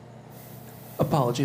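A man begins to speak close to a microphone.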